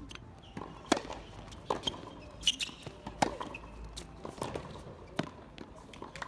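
A tennis ball is struck sharply with a racket, back and forth in a rally.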